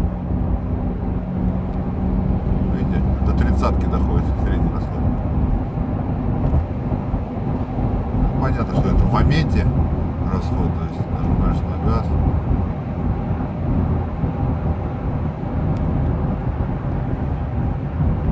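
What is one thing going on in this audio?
A car engine hums steadily at high speed.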